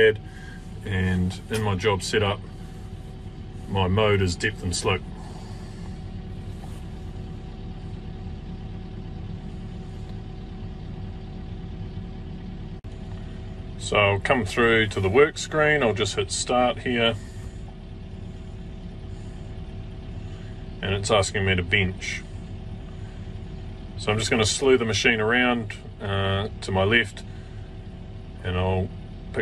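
A machine engine idles with a steady low hum.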